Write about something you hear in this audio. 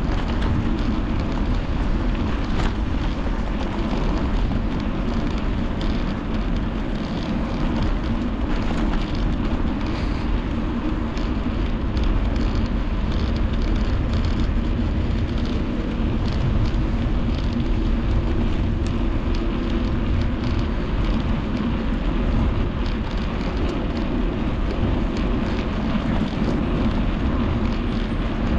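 Tyres hum steadily on smooth pavement.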